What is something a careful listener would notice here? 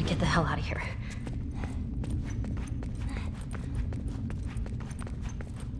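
Footsteps crunch over debris.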